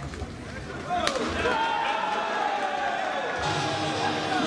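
Rackets strike a shuttlecock with sharp pops.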